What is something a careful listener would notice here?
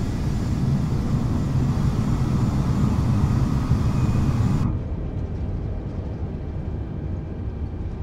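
Jet engines rumble steadily, turning more muffled partway through.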